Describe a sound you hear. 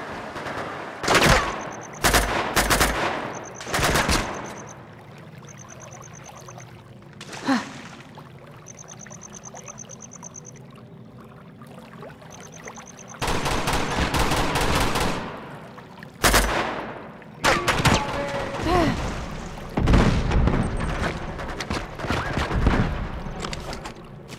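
Gunshots and rocket blasts boom and echo in bursts.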